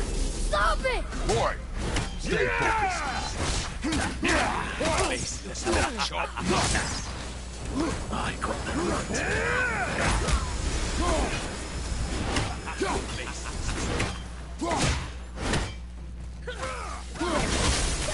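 Metal weapons clash and thud in quick, repeated blows.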